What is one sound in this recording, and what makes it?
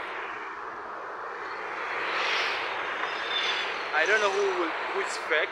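Traffic passes by outdoors on a road.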